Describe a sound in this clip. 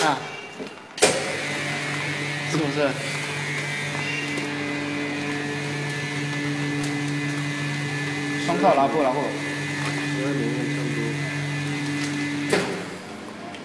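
A vacuum machine's pump hums steadily, then stops.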